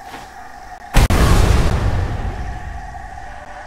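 A loud magical blast bursts and rumbles slowly away.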